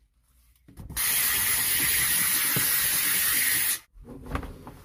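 A steam cleaner hisses loudly and steadily.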